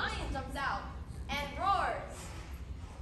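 A young woman sings into a microphone in a large echoing hall.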